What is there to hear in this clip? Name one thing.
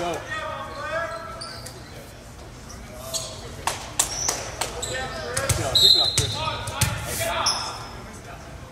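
Young men call out to each other across an echoing gym.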